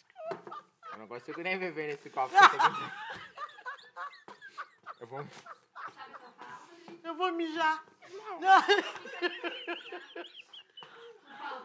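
A young woman laughs heartily.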